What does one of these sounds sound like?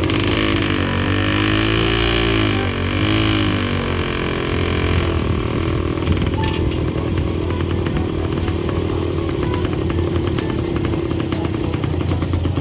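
Tyres crunch and rattle over a rough gravel track.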